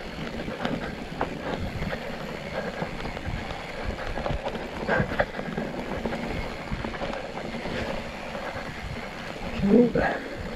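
Bike tyres roll and bump over a rough dirt trail.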